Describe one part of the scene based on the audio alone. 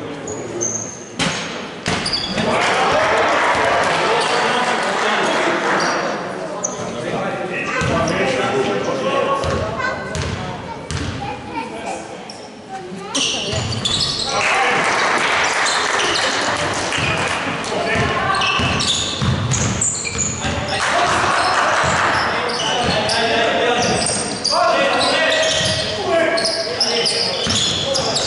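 Young men shout to each other on a court.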